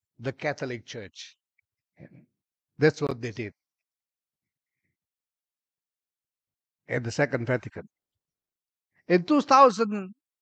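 A middle-aged man speaks calmly into a microphone in bursts, with pauses between phrases.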